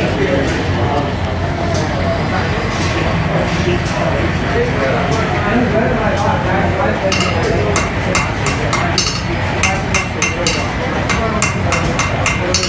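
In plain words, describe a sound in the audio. A forge fire roars steadily with a blower.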